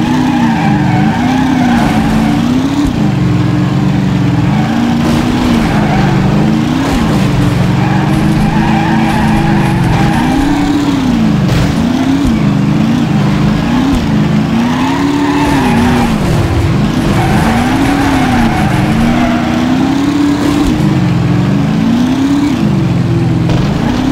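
A race car engine roars, its pitch rising and falling as it revs through the gears.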